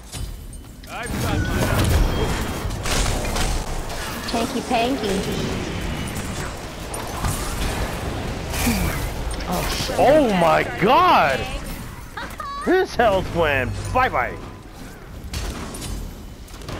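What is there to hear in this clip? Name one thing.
Spell blasts whoosh and crackle in a busy fight.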